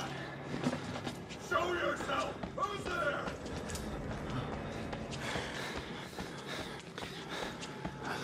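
Footsteps scuff slowly on a gritty concrete floor.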